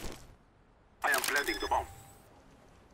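A bomb keypad beeps as buttons are pressed.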